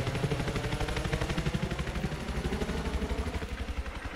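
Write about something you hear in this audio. A helicopter drones overhead.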